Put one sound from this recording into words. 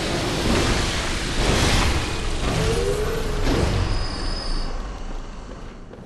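A blade swings and strikes a body.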